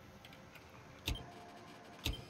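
A short burst of electronic static crackles loudly.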